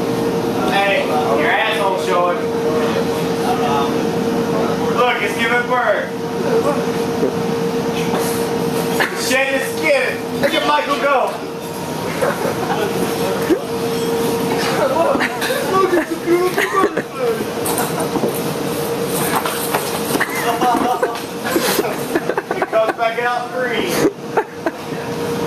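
Men talk and laugh nearby.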